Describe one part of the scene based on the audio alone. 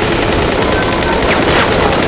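Energy beams blast and crackle.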